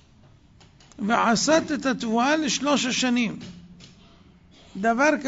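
An elderly man chants in a melodic voice into close microphones.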